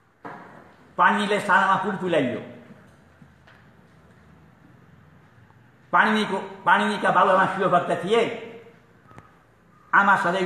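An elderly man speaks loudly and with emphasis into a microphone, in bursts with pauses.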